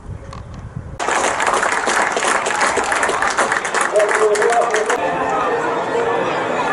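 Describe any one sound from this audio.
A crowd outdoors breaks into applause and claps steadily.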